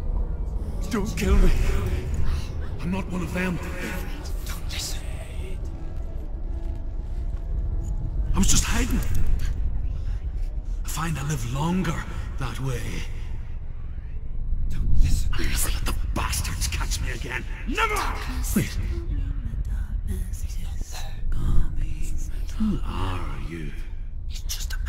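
A man speaks nearby in a frantic, fearful voice.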